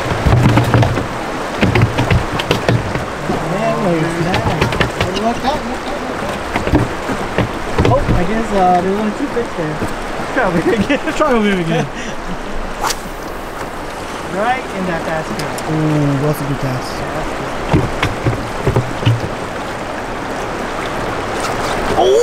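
River water rushes steadily around a boat.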